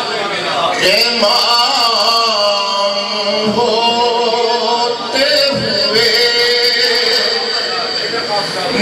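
An elderly man chants in a drawn-out, singing voice through a microphone.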